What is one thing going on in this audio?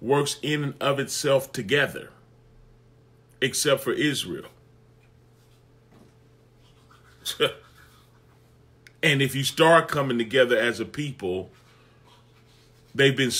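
A man talks calmly and with animation close to a microphone, with pauses between phrases.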